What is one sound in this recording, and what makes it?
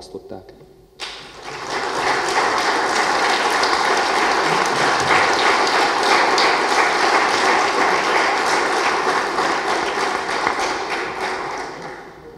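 A crowd applauds steadily in a large room, then the clapping fades.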